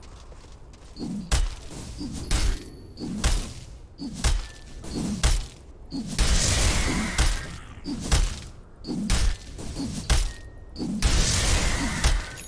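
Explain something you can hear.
Game combat effects clash and thud repeatedly in quick bursts.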